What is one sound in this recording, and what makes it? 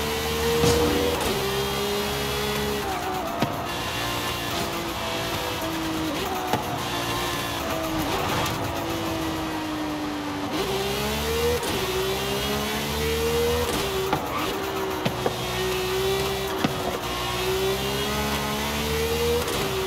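A sports car engine roars at high revs, dropping in pitch as it slows and rising again as it speeds up.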